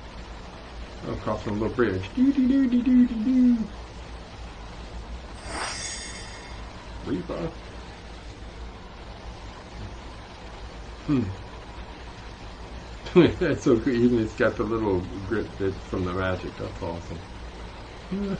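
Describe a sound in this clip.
A man talks casually into a microphone.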